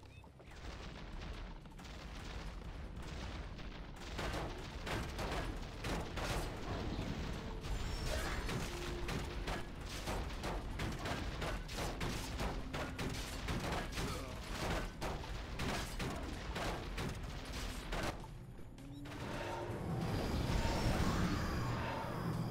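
Game sound effects of units casting spells and attacking play rapidly.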